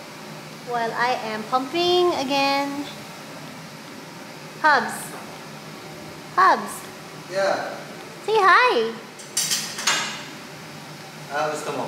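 A young woman talks playfully close by, her voice rising and falling in short bursts.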